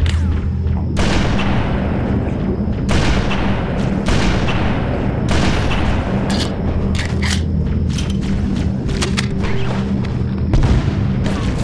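Rifle shots ring out with booming echoes.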